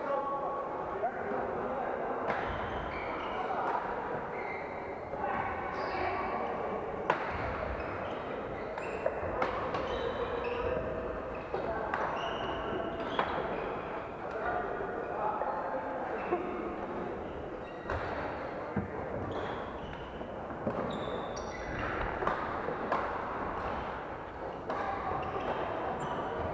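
Rackets smack shuttlecocks in a large echoing hall.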